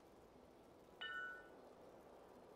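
A bright magical chime rings out once and fades.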